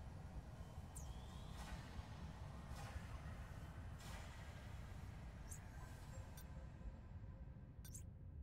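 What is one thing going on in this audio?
Short game interface clicks and blips sound now and then.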